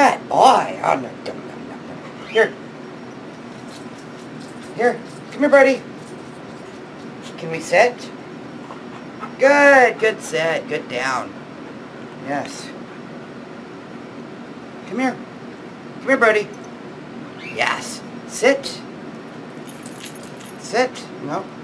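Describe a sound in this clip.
A woman speaks to a dog in short, lively bursts close by.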